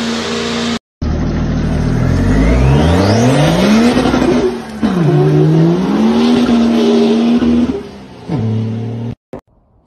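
An off-road vehicle engine revs loudly and roars as it pulls away.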